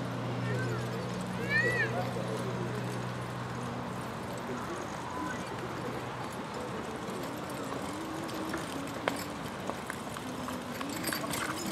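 Horses' hooves thud softly on grass at a trot.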